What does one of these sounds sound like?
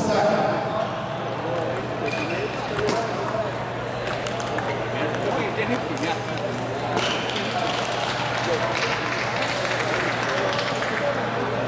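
Ping pong balls click sharply against paddles in quick rallies.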